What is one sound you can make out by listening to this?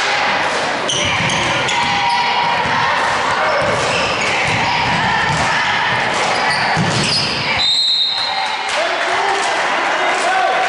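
A crowd murmurs and cheers throughout a large echoing gym.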